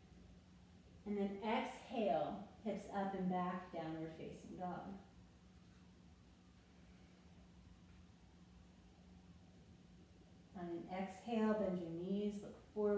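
A woman speaks calmly, giving instructions.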